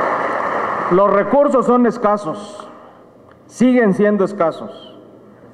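A middle-aged man speaks calmly into a microphone over loudspeakers.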